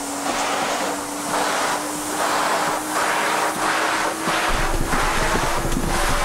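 A vacuum cleaner whirs loudly with a steady hum.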